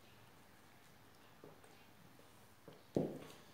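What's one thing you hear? A woman chews food.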